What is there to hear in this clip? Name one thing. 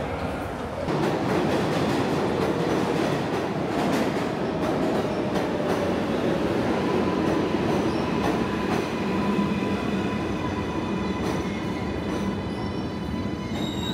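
A subway train rushes past with a loud rumbling roar.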